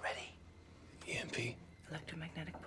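A woman speaks softly and close by.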